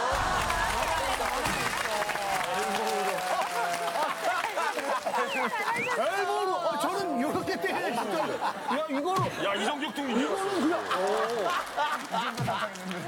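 A group of men and women laugh loudly together.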